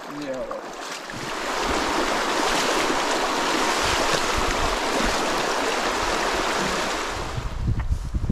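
Shallow water rushes and splashes over stones.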